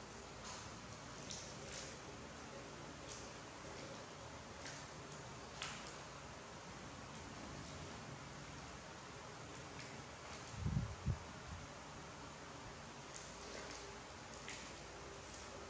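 Fresh lettuce leaves crinkle and rustle as they are handled.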